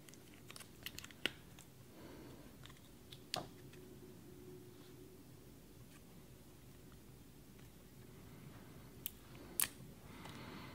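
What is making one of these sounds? Small pieces of paper and wood tap and rustle between fingers.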